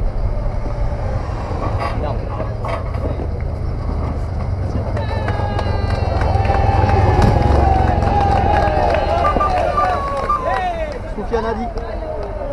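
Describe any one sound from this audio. A motorcycle engine approaches and passes close by.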